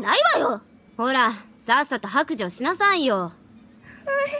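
A young woman speaks teasingly and insistently.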